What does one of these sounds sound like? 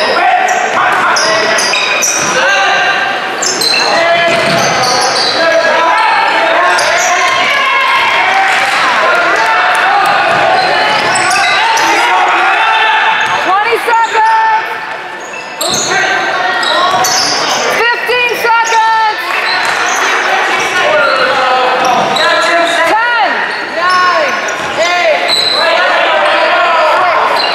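Sneakers squeak sharply on a hard floor in a large echoing gym.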